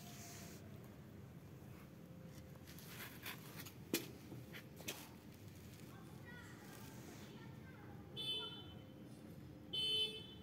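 A tortoise's shell and claws scrape softly on concrete.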